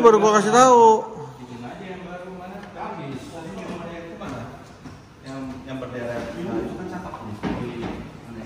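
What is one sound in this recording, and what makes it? Several men talk and laugh nearby in an echoing room.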